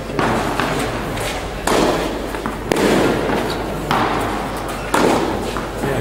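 A tennis ball is hit back and forth with rackets, echoing in a large hall.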